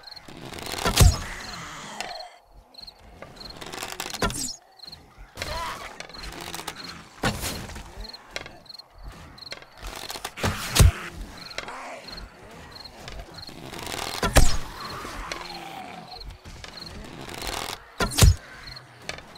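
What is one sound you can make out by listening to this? A bow string snaps as arrows are shot, one at a time.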